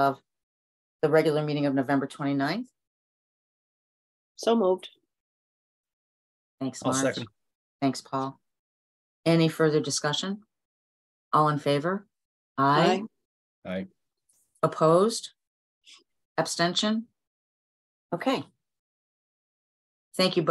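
A middle-aged woman speaks calmly in short phrases over an online call.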